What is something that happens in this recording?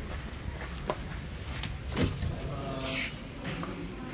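A wooden door opens.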